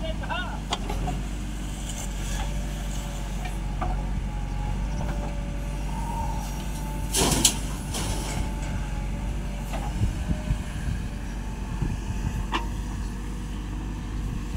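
A digger's bucket scrapes into a pile of sand.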